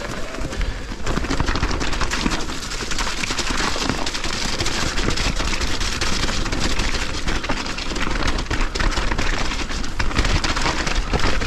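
Bicycle tyres crunch and rattle over a rough dirt and rock trail.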